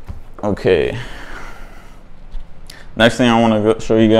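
Bare feet step across a wooden floor.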